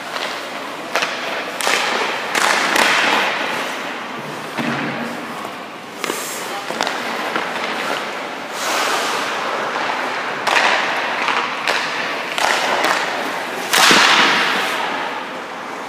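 A puck clacks off a stick and goalie pads.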